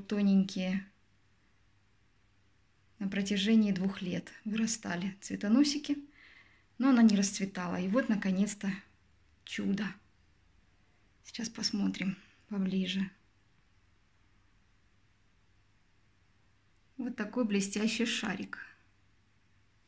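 A woman speaks calmly close by, in short phrases with pauses.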